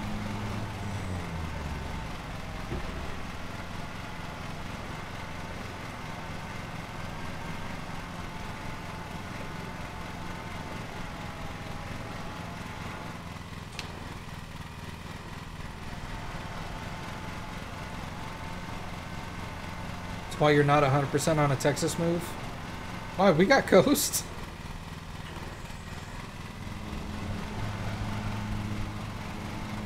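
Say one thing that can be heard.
A mower engine hums steadily.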